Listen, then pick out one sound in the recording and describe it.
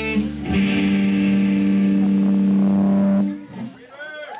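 A band's electric guitars ring out in a loud, sustained chord.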